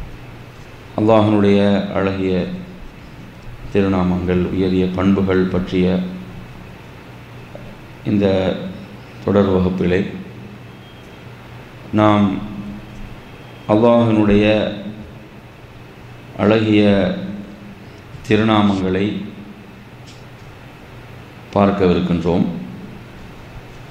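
A man recites in a slow, melodic chant into a microphone, with pauses between phrases.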